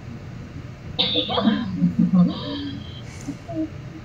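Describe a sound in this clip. Two young girls laugh and squeal close to a microphone.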